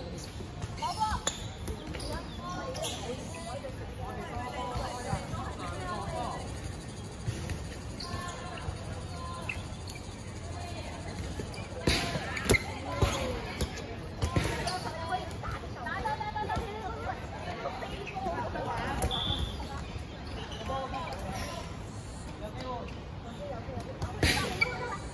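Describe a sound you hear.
Basketballs bounce on a hard court with sharp thuds.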